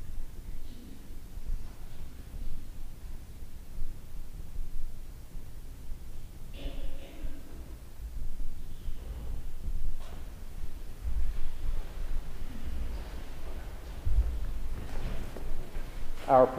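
A man speaks quietly at a distance in a large echoing room.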